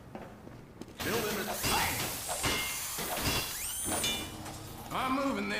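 A machine whirs and clanks as it is built.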